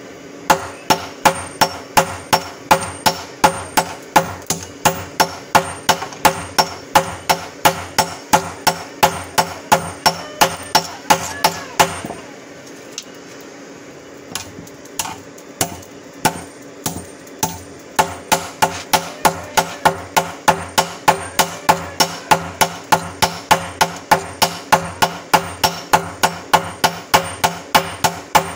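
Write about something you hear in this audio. A sledgehammer rhythmically pounds metal on an anvil with ringing clangs.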